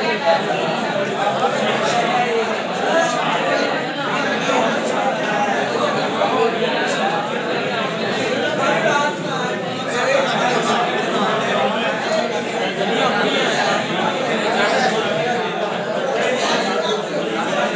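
A crowd of young men chatter loudly all around in a busy room.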